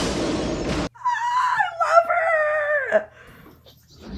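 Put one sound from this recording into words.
A young woman laughs with a high, wavering voice.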